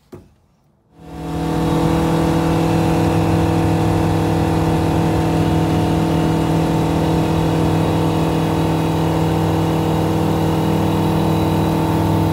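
A small plane's propeller engine starts and drones loudly and steadily.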